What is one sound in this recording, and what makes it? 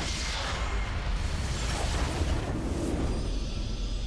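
Magic spells blast and crackle in a video game battle.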